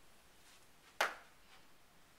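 A marker taps once against a whiteboard.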